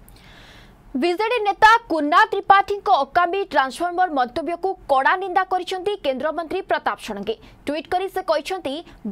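A young woman reads out the news clearly into a microphone.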